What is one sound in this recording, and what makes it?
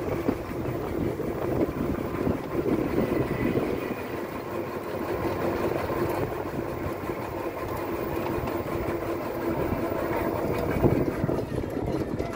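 A small motor rickshaw engine hums steadily.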